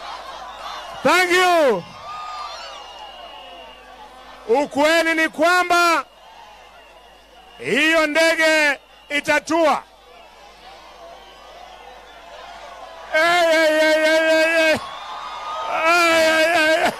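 A man shouts with passion through a loudspeaker in short bursts.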